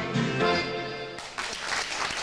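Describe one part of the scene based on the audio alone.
An accordion plays a sustained chord that ends.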